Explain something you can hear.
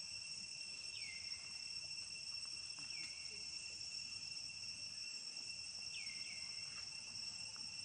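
Young monkeys squeak with short high cries now and then.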